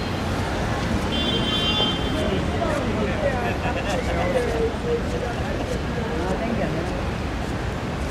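Young people talk nearby outdoors.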